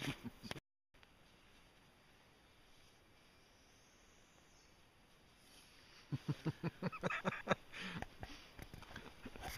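Nylon fabric rustles as a quilt is pulled on.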